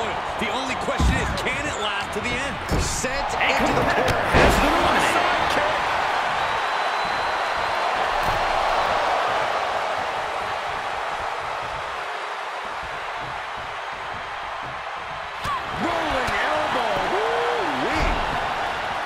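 Bodies slam onto a wrestling ring mat.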